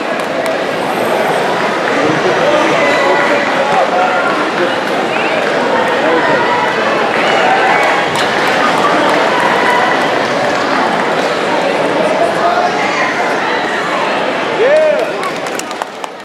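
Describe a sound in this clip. A large crowd murmurs and shouts in a big echoing hall.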